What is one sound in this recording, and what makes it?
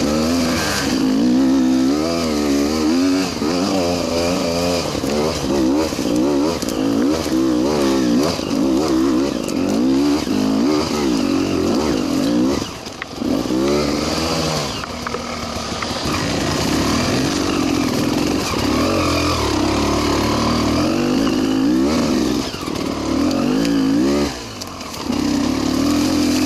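A dirt bike engine revs hard up and down, close by.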